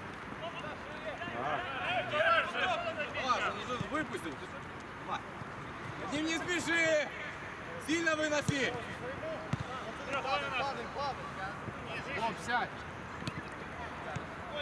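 Young men shout to each other across an open outdoor pitch.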